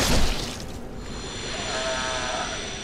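A shimmering magical burst crackles and rings.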